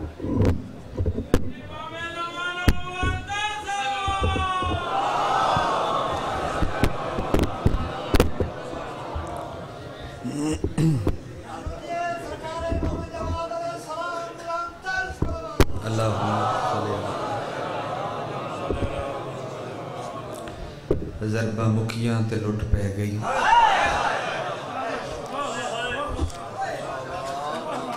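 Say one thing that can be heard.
A young man chants passionately into a microphone, amplified through loudspeakers in an echoing hall.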